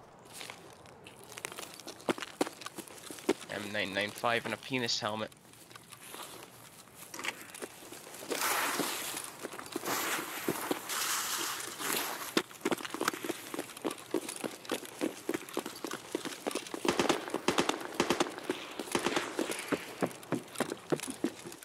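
Footsteps run quickly over grass, gravel and wooden boards.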